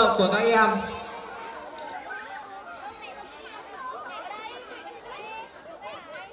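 A young man speaks calmly into a microphone over loudspeakers.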